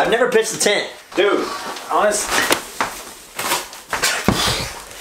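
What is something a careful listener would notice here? Cardboard rustles and scrapes as a man handles a box.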